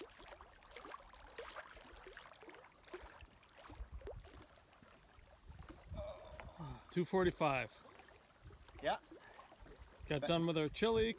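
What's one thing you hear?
Small waves lap gently at a rocky shore.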